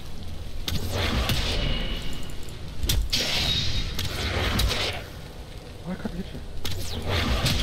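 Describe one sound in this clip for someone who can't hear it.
Glowing magic bolts whoosh past.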